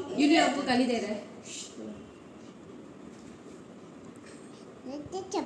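A young girl speaks nearby in a high, lively voice.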